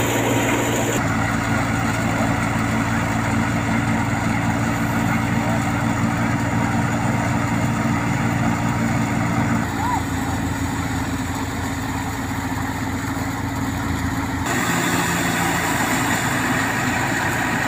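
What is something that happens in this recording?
A threshing machine's engine drones steadily nearby.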